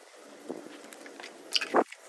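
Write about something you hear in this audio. Footsteps slap on wet pavement.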